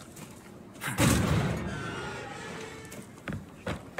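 Heavy metal double doors creak open.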